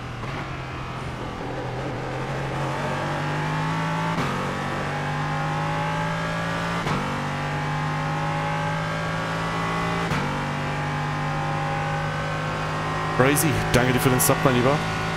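A racing car engine drones steadily, climbing in pitch and dropping briefly with each gear change.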